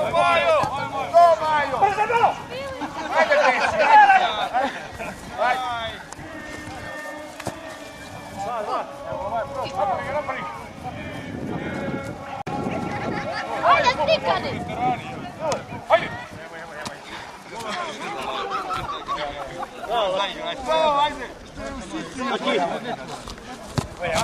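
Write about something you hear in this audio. Men shout and call out to each other outdoors.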